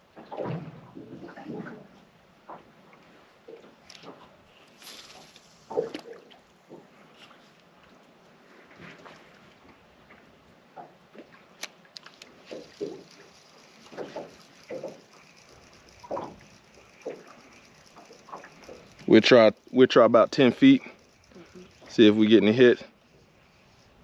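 Water laps gently against the side of a boat.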